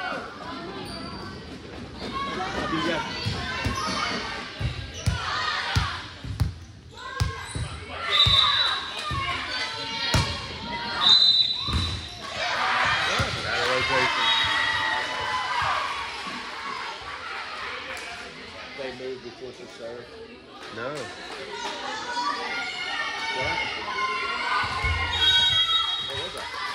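Girls and spectators chatter and shout across the echoing hall.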